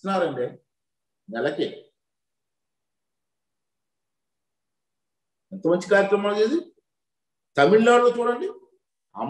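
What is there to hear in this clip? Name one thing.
A middle-aged man speaks firmly into a microphone, in short bursts with long pauses.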